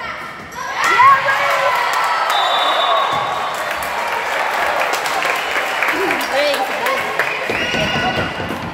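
Spectators cheer and clap after a rally.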